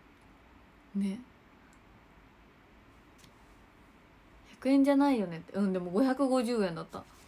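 A young woman talks casually and animatedly close to a microphone.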